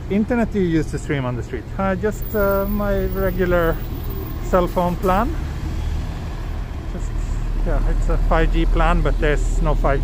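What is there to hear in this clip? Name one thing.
A bus drives past close by with a low engine rumble.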